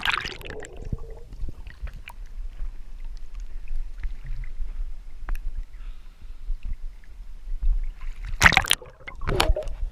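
Water splashes and bubbles close by.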